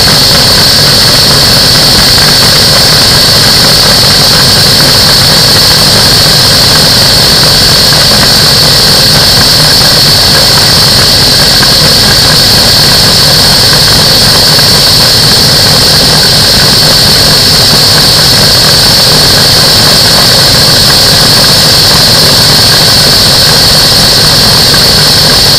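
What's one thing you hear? An engine drones steadily and loudly close by.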